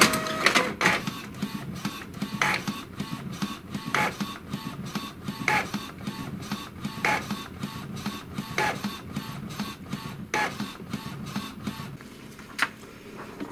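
A printer whirs and clicks in a steady rhythm as its mechanism runs.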